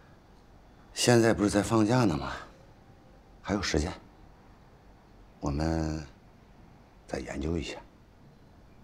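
A middle-aged man speaks calmly in short bursts, close by.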